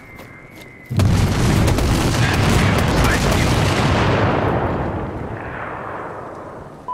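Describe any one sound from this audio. A loud explosion booms and roars, then slowly fades.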